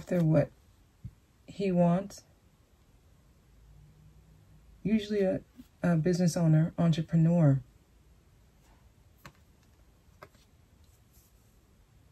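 Playing cards slide and tap softly as they are laid down.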